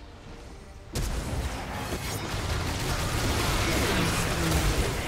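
Magic spells whoosh and crackle in a fast, chaotic fight.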